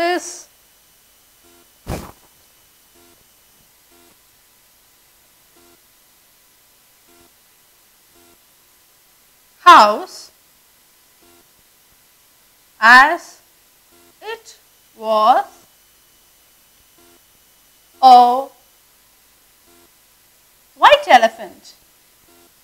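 A woman speaks in short bursts, pausing between phrases.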